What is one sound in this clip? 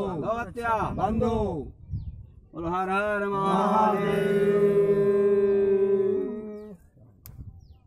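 A man chants loudly in a sustained, sing-song voice nearby.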